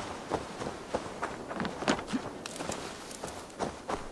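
Leaves and brush rustle as someone pushes through.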